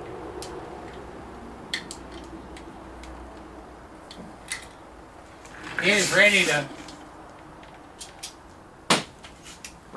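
Metal parts clink briefly as they are handled.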